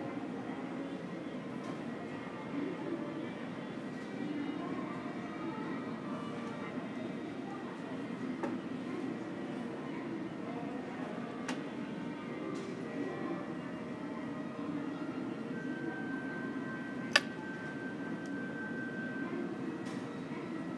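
A large echoing hall hums with a steady low murmur.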